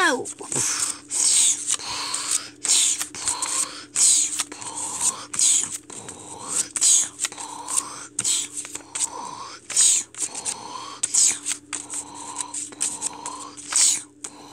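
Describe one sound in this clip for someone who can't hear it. Paper cutouts rustle and flap as they are shaken close by.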